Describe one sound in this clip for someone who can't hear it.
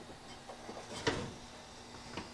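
An oven rack slides out with a metallic scrape.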